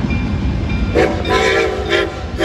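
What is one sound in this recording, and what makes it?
A steam whistle blows loudly.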